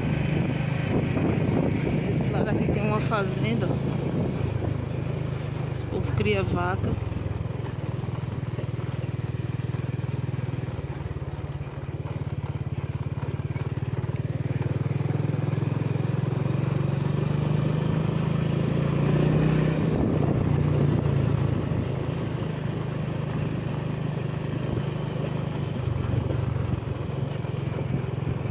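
A small motorbike engine hums steadily close by.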